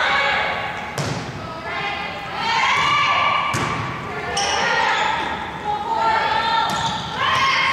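A volleyball is struck with a sharp smack.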